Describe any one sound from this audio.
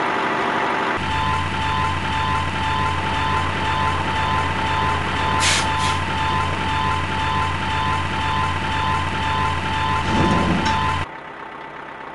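A cartoon crane motor hums steadily.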